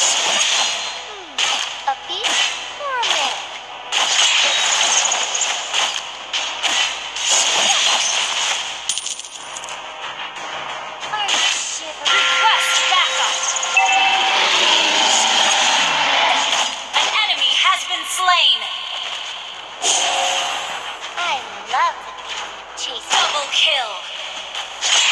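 Game fighting effects clash and whoosh in quick bursts.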